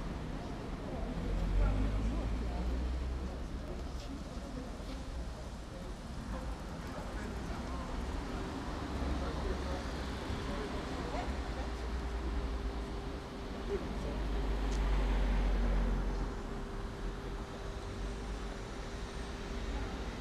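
Footsteps pass on pavement.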